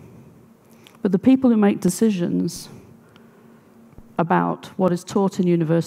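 A middle-aged woman speaks with animation through a headset microphone.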